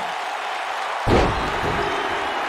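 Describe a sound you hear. A body slams onto a ring mat with a heavy thud.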